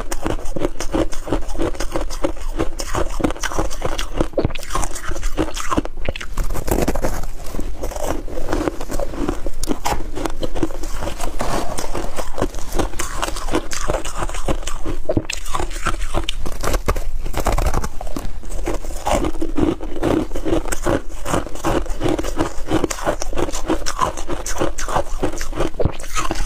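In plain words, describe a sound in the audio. Loose ice crunches and rustles as gloved hands squeeze it.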